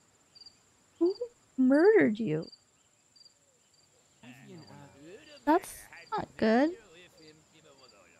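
A young woman talks with animation through a microphone, close up.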